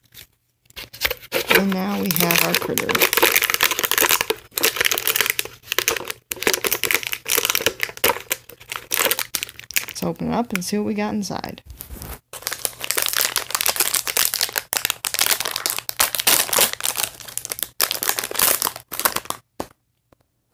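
Plastic packaging crinkles and rustles as hands tear it open.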